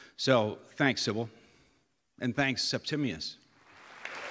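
A middle-aged man speaks into a microphone on stage.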